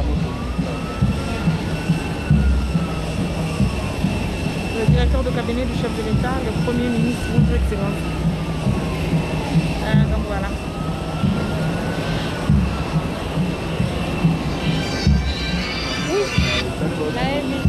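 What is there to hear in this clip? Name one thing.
A crowd murmurs softly outdoors.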